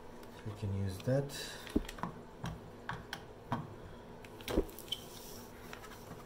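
Hard plastic parts click and knock as a power tool is handled.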